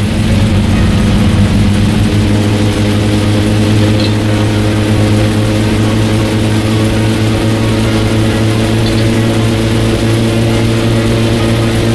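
A car engine hums steadily at cruising speed.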